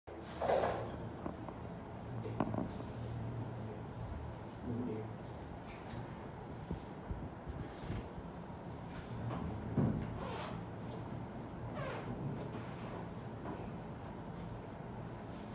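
A ceiling fan hums steadily.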